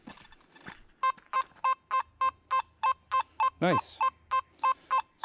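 A metal detector beeps in quick, even pulses.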